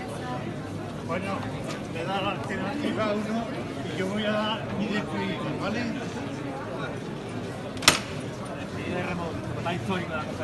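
Several men talk nearby in a murmuring crowd.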